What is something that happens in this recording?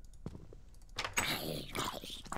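A zombie groans.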